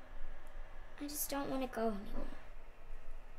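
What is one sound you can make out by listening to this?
A young girl speaks softly, close by.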